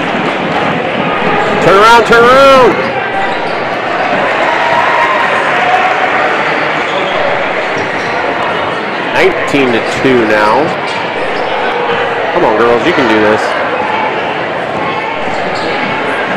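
A basketball bounces on the court as it is dribbled.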